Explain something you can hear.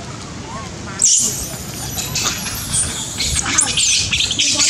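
Young macaques shriek and scream.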